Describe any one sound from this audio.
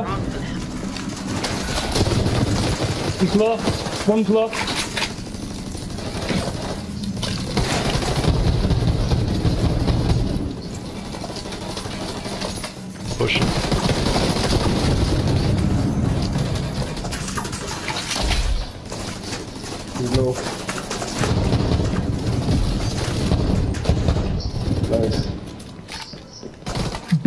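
Automatic rifles fire in rapid bursts.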